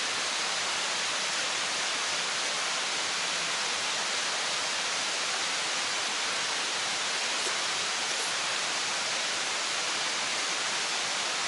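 Rain patters steadily on a tent.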